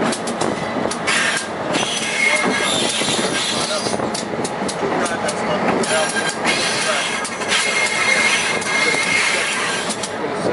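Metal wheels squeal on the rails.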